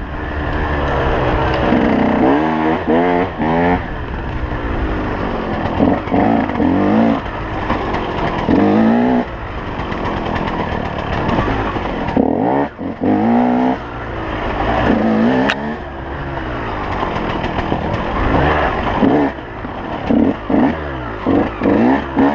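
Tyres crunch over leaves and dirt.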